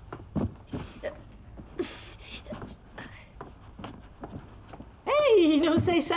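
Footsteps and light knocks sound as boxes are handled.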